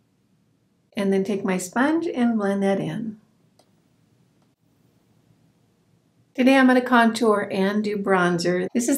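A middle-aged woman talks calmly and close to a microphone.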